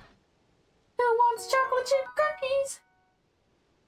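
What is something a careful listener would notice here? A short bright musical jingle plays.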